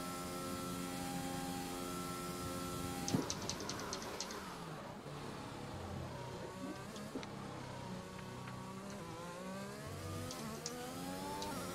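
A racing car engine whines loudly, drops sharply as the car brakes and shifts down, then revs up again.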